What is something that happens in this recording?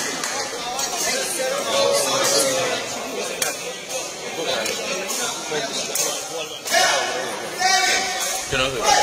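A crowd of spectators chatters.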